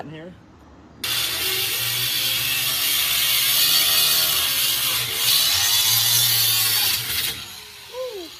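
An angle grinder whines loudly as it cuts through metal.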